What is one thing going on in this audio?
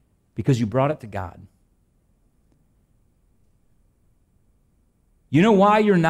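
A man preaches with emphasis through a microphone in a large hall.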